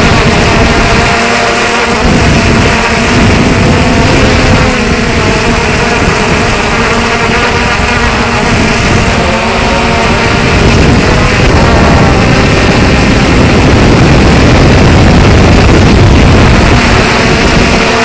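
Drone propellers buzz loudly and steadily close by.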